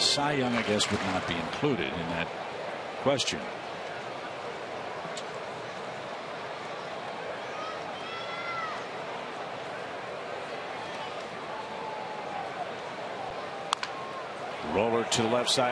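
A large crowd murmurs steadily.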